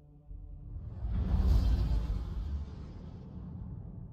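A spaceship engine roars and fades as it speeds away.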